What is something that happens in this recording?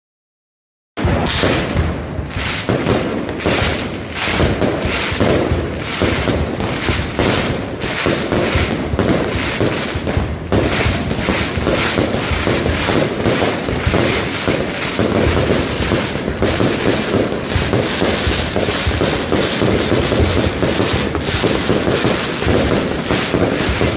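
Mascletà firecrackers explode overhead in a rapid, dense barrage.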